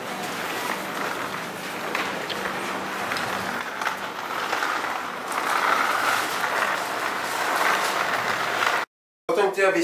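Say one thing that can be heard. Fabric rustles and flaps as clothing is handled.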